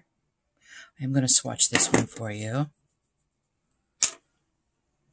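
A small metal pan clicks onto a magnetic palette.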